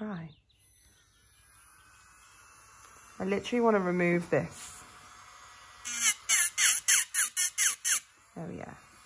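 An electric nail drill whirs with a steady, high hum.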